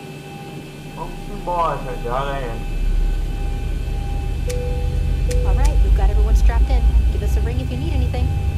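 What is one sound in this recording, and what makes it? A jet engine's deep rumble builds and grows steadily louder.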